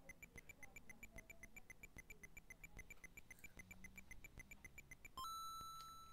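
A retro video game beeps rapidly in a steady ticking rhythm.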